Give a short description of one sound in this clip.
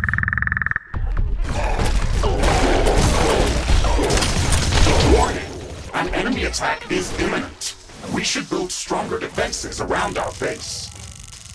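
An energy weapon fires in rapid crackling bursts.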